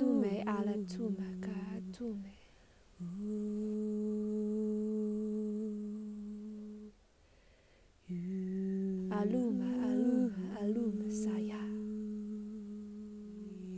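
A young woman sings nearby, holding long steady notes between short pauses.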